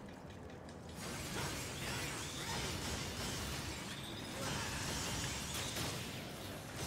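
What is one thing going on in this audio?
Sword slashes and explosions clash in a fast fight.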